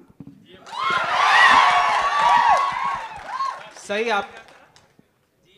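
An audience cheers and whoops.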